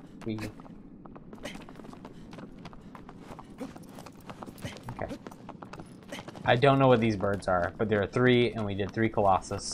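Footsteps patter on stone.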